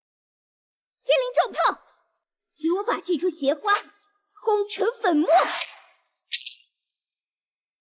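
A young woman speaks forcefully.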